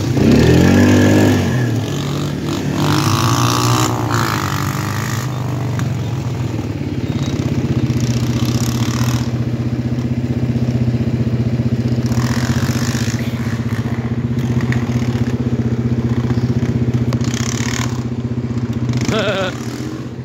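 A dirt bike engine revs loudly and then drones steadily nearby.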